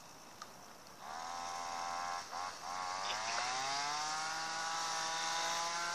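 A fishing reel whines loudly, rising in pitch.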